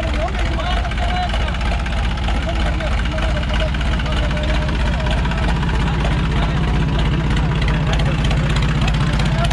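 Young men talk and call out nearby outdoors.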